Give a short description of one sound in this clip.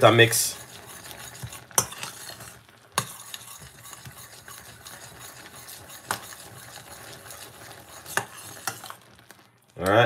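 A thick liquid bubbles and simmers in a pot.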